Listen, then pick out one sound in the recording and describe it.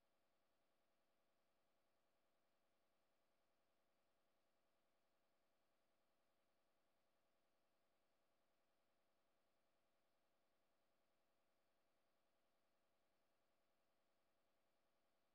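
Soft, steady electronic game music plays quietly.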